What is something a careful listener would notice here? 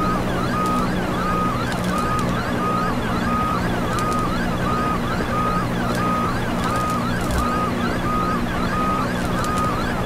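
A helicopter's rotor thumps steadily with a low engine drone.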